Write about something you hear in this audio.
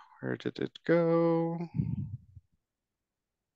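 A man speaks briefly through an online call.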